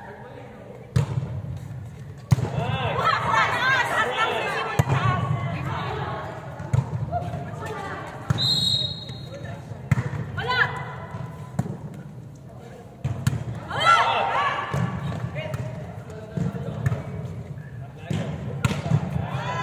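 A volleyball thumps off players' arms and hands in a large echoing hall.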